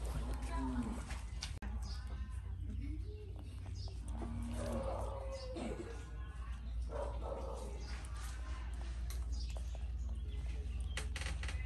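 A monkey's fingers rustle through a person's hair.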